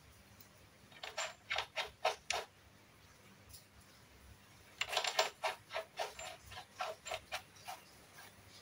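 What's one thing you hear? A metal nut clicks and rattles as it is turned by hand.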